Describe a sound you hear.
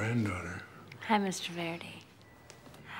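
A woman replies briefly in a bright voice.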